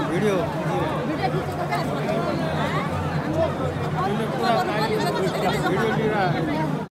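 A large crowd of men and women shouts and cheers outdoors.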